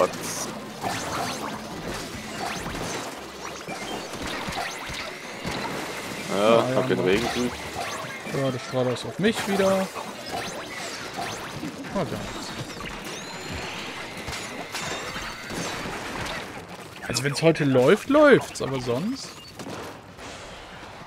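Game sound effects splatter and pop.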